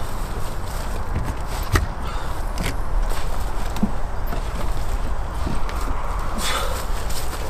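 A plastic fuel can knocks against the ground.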